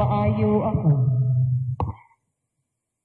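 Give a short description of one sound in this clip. An older man sings a short phrase through a microphone, then stops abruptly.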